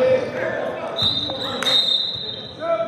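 A referee blows a sharp, steady whistle blast.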